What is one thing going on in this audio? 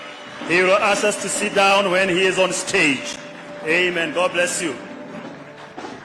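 A man speaks loudly through a microphone and loudspeakers, echoing in a large space.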